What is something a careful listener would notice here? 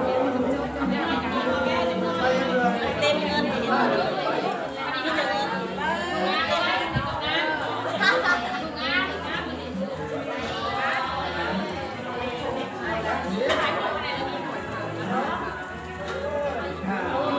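Several women and men talk and chant together nearby.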